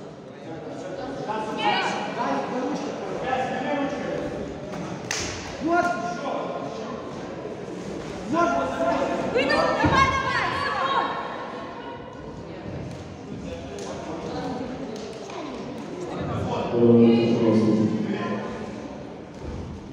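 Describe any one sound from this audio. Several people shout and cheer in a large echoing hall.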